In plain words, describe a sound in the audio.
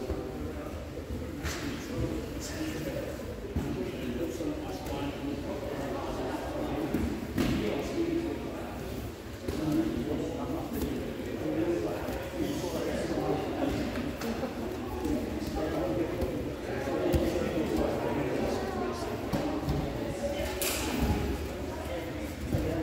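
Several people talk in a large echoing hall.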